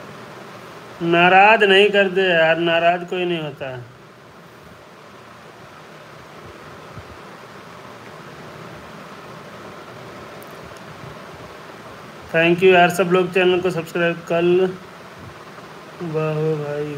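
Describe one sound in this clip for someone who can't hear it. An adult speaks close to the microphone.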